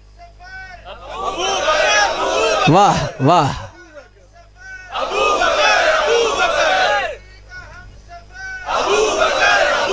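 A crowd of men chants loudly together in bursts.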